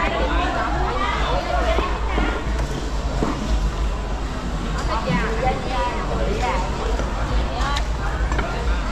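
Several women and men chatter nearby in a busy, bustling market.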